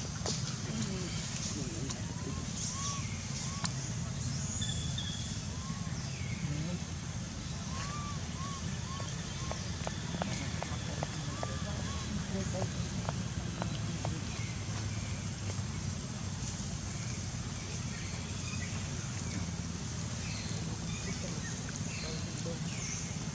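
A small monkey chews food close by.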